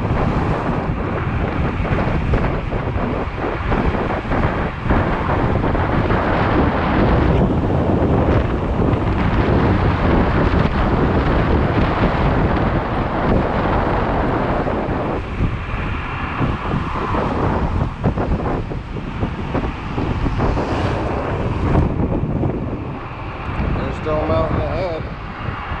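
Wind roars and buffets against a microphone on a fast electric scooter.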